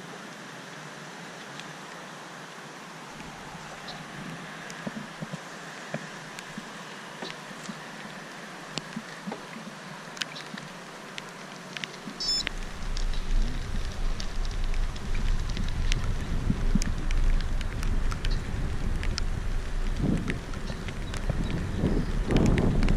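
Bicycle tyres roll over a paved path with light clicks and rattles.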